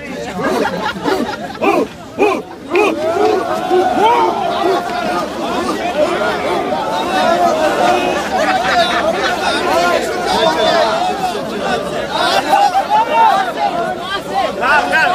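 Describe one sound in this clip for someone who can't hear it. A crowd of men shouts and yells loudly and continuously.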